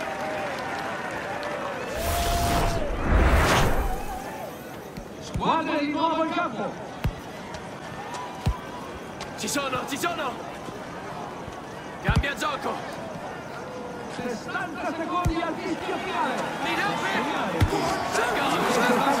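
A crowd cheers and murmurs throughout.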